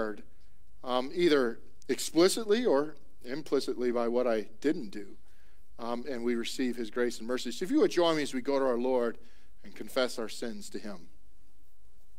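A man speaks calmly through a loudspeaker in a large echoing hall.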